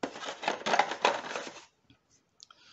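Small plastic pieces rattle and clatter in a box.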